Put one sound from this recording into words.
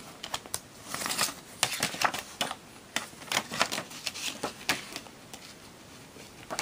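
Paper rustles as a booklet is leafed through.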